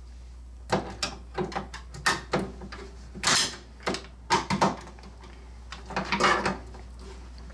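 Metal parts clink and rattle as a hand handles them.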